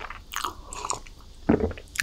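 A young woman gulps a drink close to the microphone.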